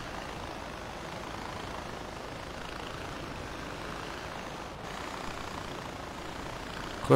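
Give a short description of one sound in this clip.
A small aircraft motor whirs steadily.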